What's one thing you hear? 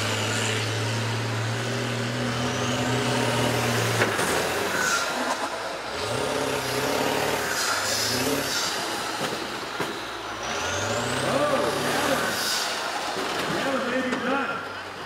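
Bus engines roar and rev loudly outdoors.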